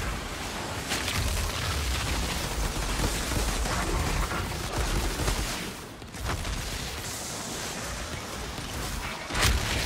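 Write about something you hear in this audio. A creature roars and snarls.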